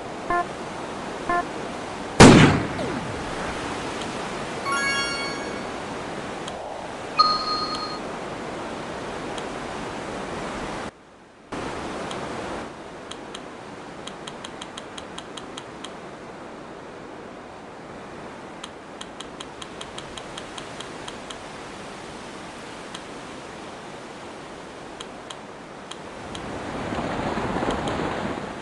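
Water rushes and splashes steadily as sailboats race.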